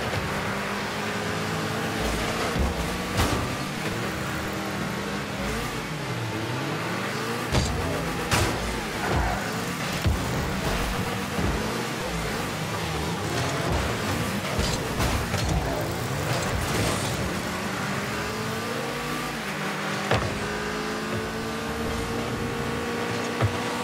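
A car engine hums steadily and rises and falls in pitch.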